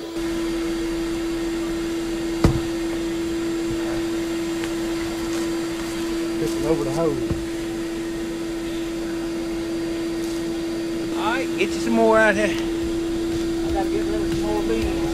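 A vacuum motor hums steadily throughout.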